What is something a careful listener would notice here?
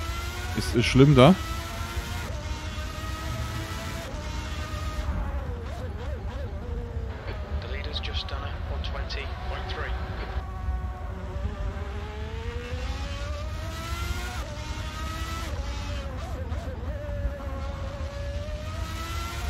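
A racing car engine whines steadily, rising and falling in pitch as the gears change.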